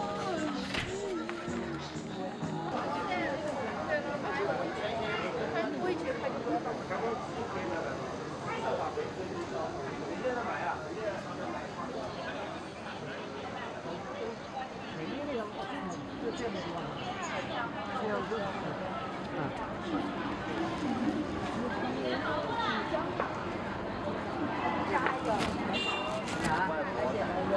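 A crowd of people chatter and talk nearby outdoors.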